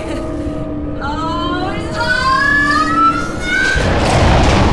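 An electronic whine rises quickly in pitch.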